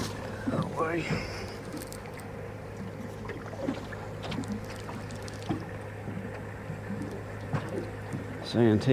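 Water laps gently against a small boat's hull.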